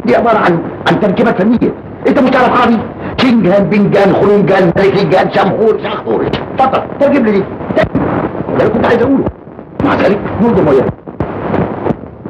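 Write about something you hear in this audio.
A man talks loudly and angrily, close by.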